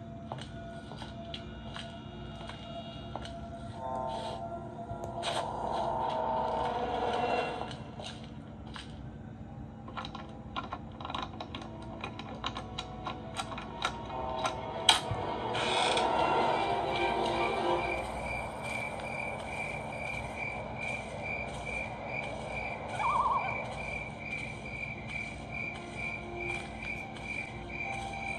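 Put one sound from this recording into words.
Fingertips tap and brush on a glass touchscreen.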